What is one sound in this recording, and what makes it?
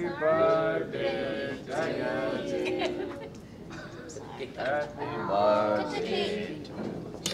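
A small group of men and women sing together nearby.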